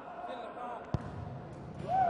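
A foot kicks a ball with a sharp thud.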